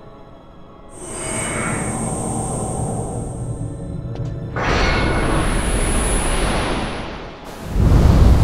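A magical energy surges with a rising whoosh.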